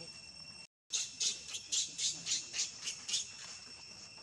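A baby monkey squeals in short, rapid cries.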